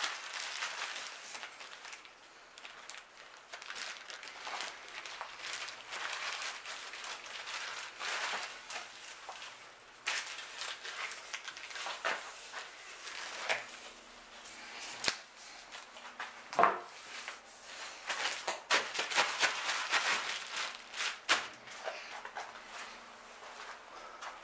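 Sandpaper rubs back and forth against a smooth hard surface.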